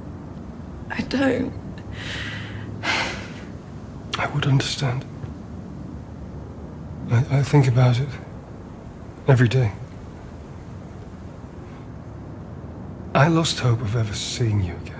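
A young woman answers softly, close by.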